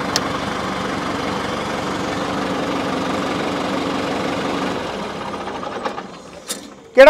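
A tractor engine idles steadily nearby.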